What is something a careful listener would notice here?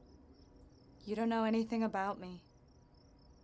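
A young woman speaks softly and with emotion close by.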